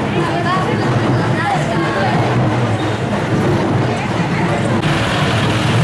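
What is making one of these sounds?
A crowd of women chatters nearby.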